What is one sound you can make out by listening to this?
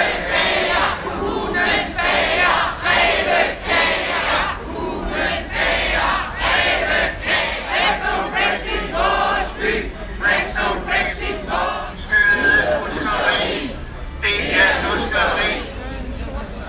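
An elderly man speaks loudly through a megaphone outdoors.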